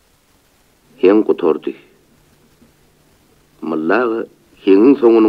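An elderly man sings loudly in short, wavering phrases.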